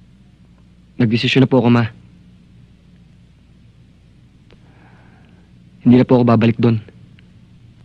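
A young man speaks in short, calm phrases close by.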